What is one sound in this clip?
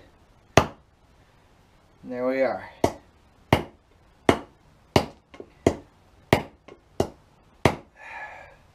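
A hatchet chops sharply into wood again and again.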